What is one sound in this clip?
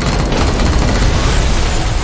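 An electric blast bursts and crackles loudly.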